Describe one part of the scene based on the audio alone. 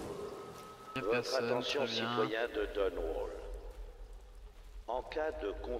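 A young man speaks casually into a close microphone.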